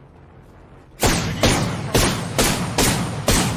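A gun fires in loud, rapid bursts.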